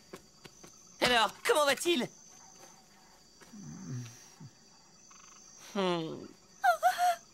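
A man speaks in a sly, animated voice.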